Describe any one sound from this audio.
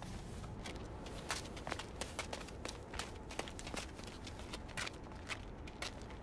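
Footsteps crunch on icy ground as several men run.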